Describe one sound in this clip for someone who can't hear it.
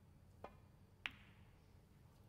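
Snooker balls knock together with a crisp click.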